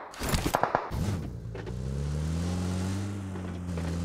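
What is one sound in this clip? A vehicle engine hums and revs.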